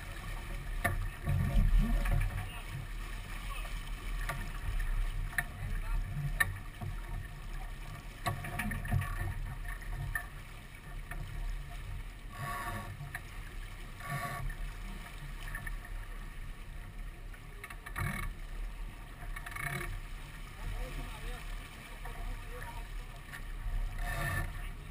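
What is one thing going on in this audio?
Ropes and gear clatter and knock on a sailboat's deck.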